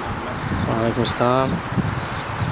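A man speaks briefly close by, outdoors.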